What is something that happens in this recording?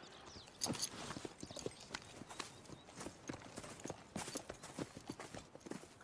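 Footsteps crunch on grass and dirt.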